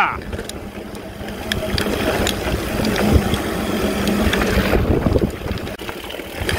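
Bicycle tyres roll and crunch over a rough dirt trail.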